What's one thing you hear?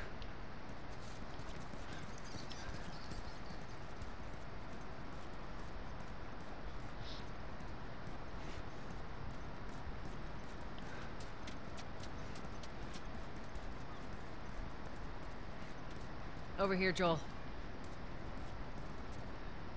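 Footsteps patter on pavement.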